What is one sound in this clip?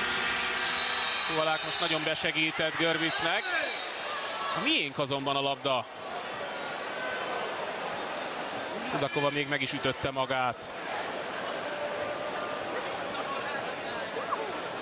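A large crowd cheers and chants in a big echoing hall.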